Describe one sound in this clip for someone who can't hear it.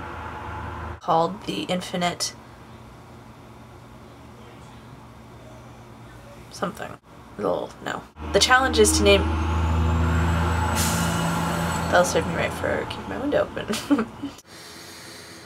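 A young woman talks casually, close to the microphone.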